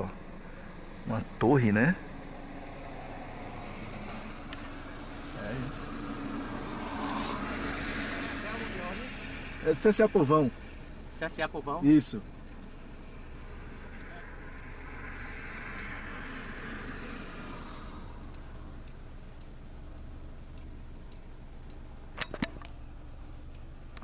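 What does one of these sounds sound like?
A car engine hums steadily at idle.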